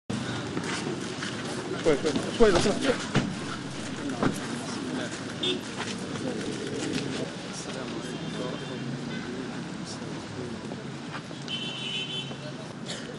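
Men talk nearby in low, murmuring voices.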